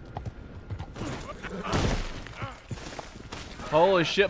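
A horse crashes down onto the ground.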